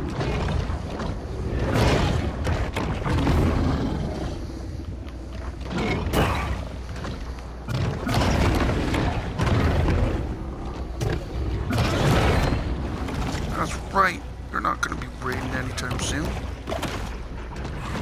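Water churns and rushes underwater.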